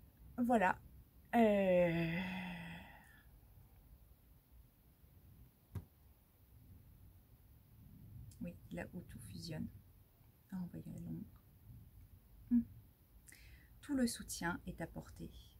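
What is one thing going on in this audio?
A young woman speaks calmly and close by, with pauses.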